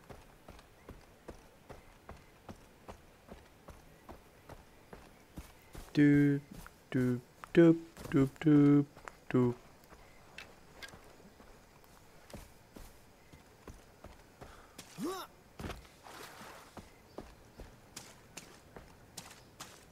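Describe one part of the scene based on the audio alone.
Footsteps crunch steadily on gravel and grass.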